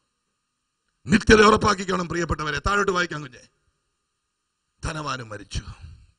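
A middle-aged man speaks with animation into a microphone over loudspeakers.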